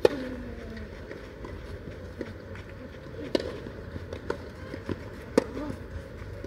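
Tennis balls are struck sharply with rackets back and forth.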